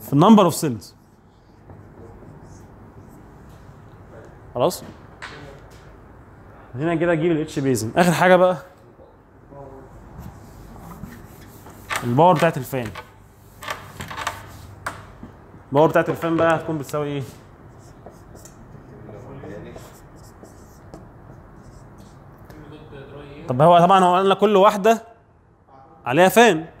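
A young man speaks calmly, lecturing.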